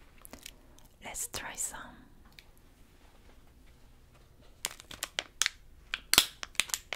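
A plastic candy wrapper crinkles close to a microphone.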